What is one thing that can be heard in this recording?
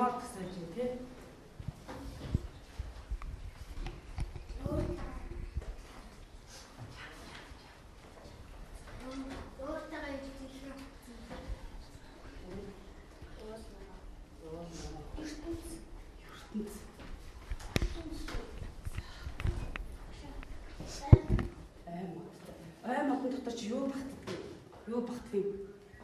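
A woman speaks with animation to a class.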